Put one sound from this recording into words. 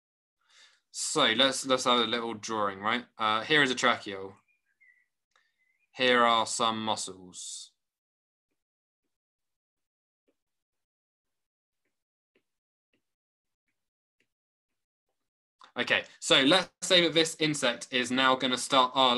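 A man talks calmly through a microphone on an online call, pausing now and then.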